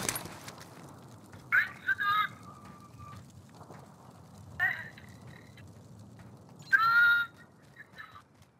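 Footsteps thud on a hard rooftop.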